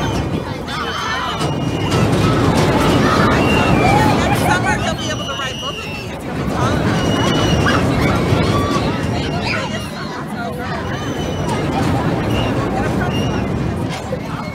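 Riders on a roller coaster scream excitedly.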